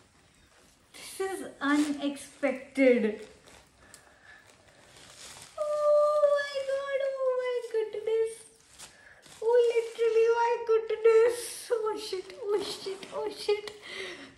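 A young woman speaks excitedly up close.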